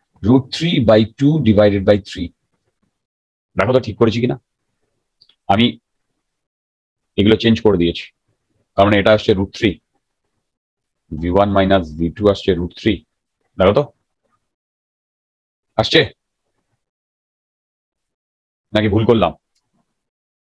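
A man explains calmly into a close microphone, in short phrases with pauses.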